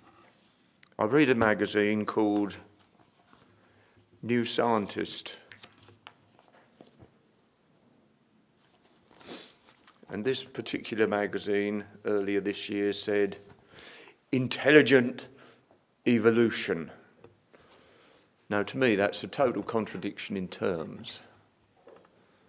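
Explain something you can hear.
An elderly man speaks calmly into a microphone, pausing between phrases.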